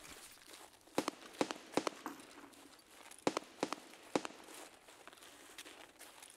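Footsteps crunch through snow at a walking pace.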